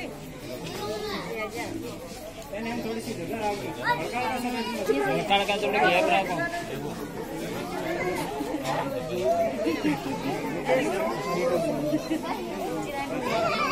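A crowd of men and women chatter and call out close by.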